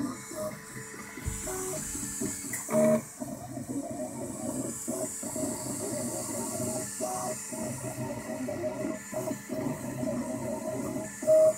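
Printer motors whir and buzz in shifting tones as a print head moves back and forth.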